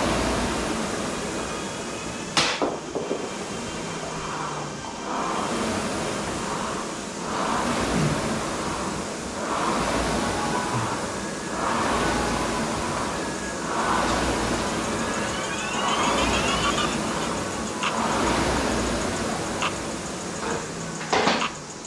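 A rowing machine's flywheel whooshes in a steady, repeating rhythm.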